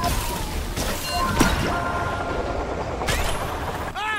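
Sharp blasts and crashes burst out in quick bursts.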